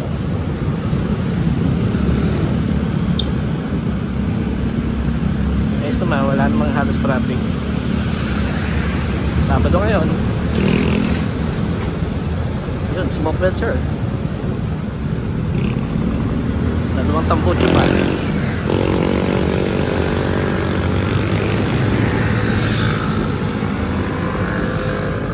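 Other motorbikes and traffic pass close by.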